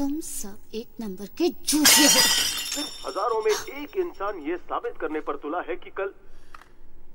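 A young woman speaks in a distressed, breaking voice close by.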